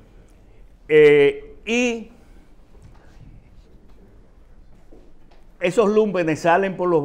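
An elderly man speaks with animation close to a microphone.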